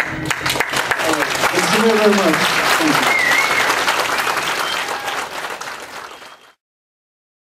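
An audience applauds and cheers in a room, then fades out.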